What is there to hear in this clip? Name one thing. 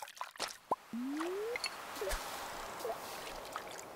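A float plops into water.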